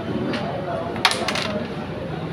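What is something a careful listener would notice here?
A striker sharply cracks into a cluster of wooden game pieces.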